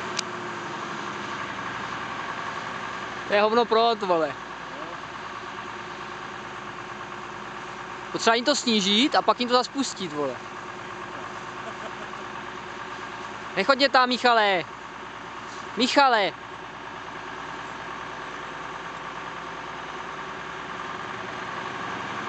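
A high-pressure fire hose jet hisses, spraying water onto grass.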